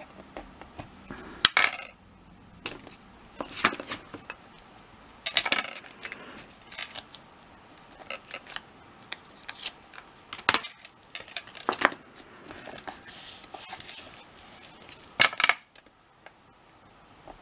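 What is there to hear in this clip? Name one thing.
Paper rustles and crinkles as hands fold and press it.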